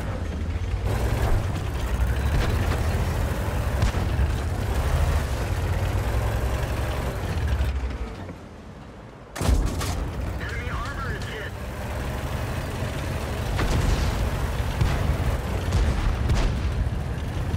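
A tank engine rumbles deeply.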